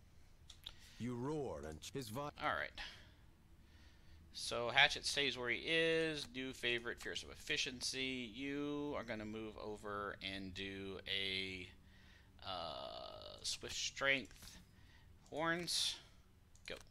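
A middle-aged man talks with animation into a close microphone.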